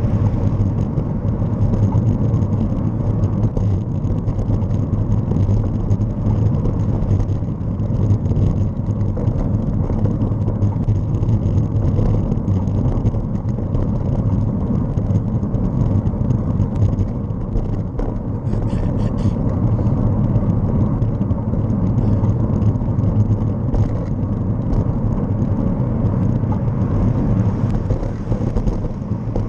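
Tyres hum steadily on the road surface.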